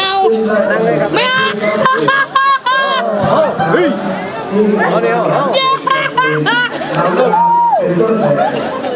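A young woman laughs and shouts excitedly close by.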